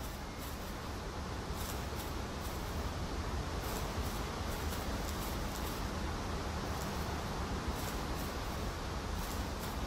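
Footsteps pad softly on grass.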